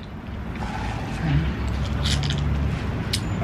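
A man slurps a drink through a straw.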